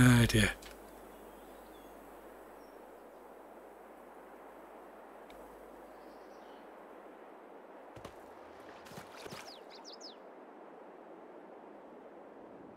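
Water laps gently at a lakeshore.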